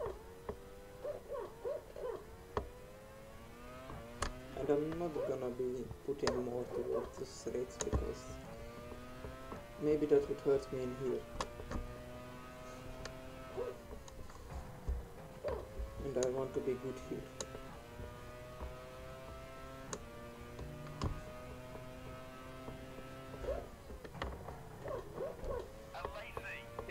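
A racing car engine whines, revving up and down through the gears.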